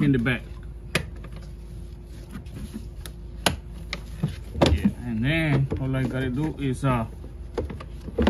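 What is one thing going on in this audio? Plastic clips click and snap.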